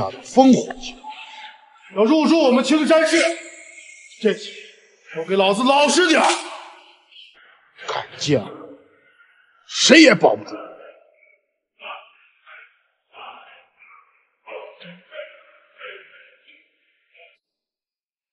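A young man speaks tensely and close by.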